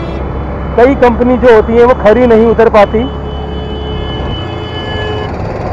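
A motorcycle engine hums steadily as it rides along a road.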